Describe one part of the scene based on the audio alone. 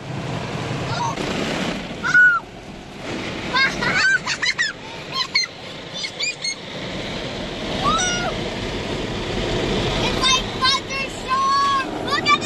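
Young girls squeal and laugh excitedly close by.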